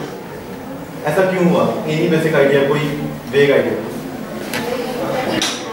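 A man lectures calmly in a room with a slight echo.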